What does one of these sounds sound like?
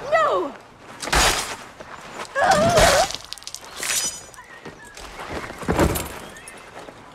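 A woman gasps and groans in pain.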